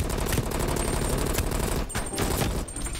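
Rapid gunfire rattles close by.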